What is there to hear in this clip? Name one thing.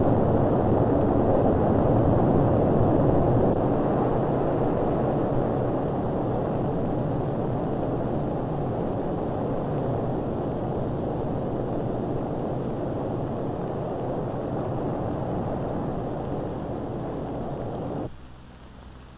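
A rocket engine roars loudly and steadily, slowly fading.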